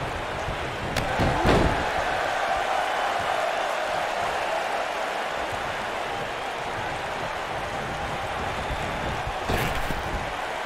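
Heavy blows land with loud thuds.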